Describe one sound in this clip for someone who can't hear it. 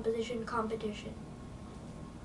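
A boy speaks briefly.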